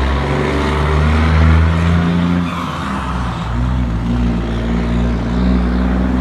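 A pickup truck's engine idles and drives past.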